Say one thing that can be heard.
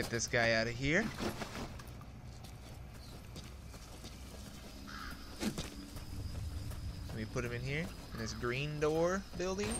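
Footsteps crunch softly on dirt and gravel.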